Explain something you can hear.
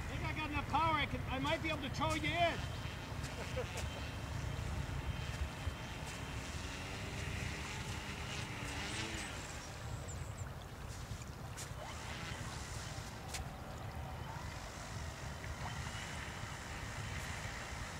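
A small model plane's motor buzzes over water.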